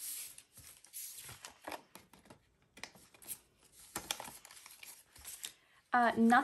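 Banknotes and thin plastic sleeves rustle and crinkle up close.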